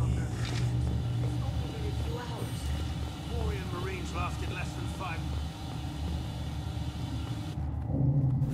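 Heavy footsteps thud on metal stairs.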